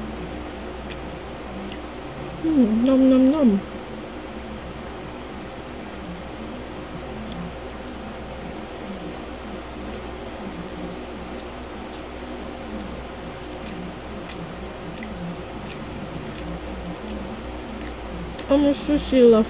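A woman chews a crisp snack with soft crunching close by.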